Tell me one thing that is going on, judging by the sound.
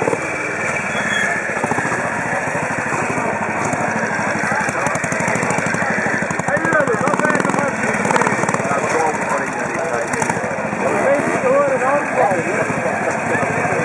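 A motorcycle engine putters and revs up close.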